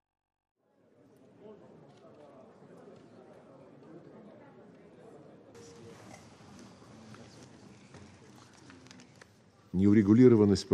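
Many people murmur quietly in a large hall.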